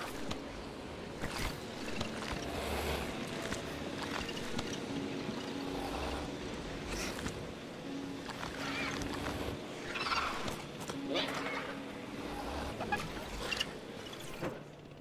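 Small dinosaurs chirp and squeak.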